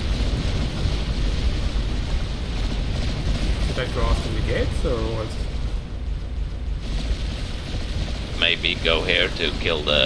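Explosions rumble and boom in a distant battle.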